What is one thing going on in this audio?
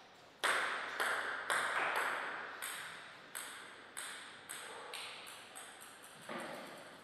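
A table tennis ball bounces on a hard floor, quicker and quicker as it settles.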